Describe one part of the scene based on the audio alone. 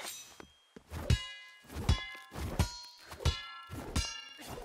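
A pickaxe strikes rock with sharp, ringing clangs.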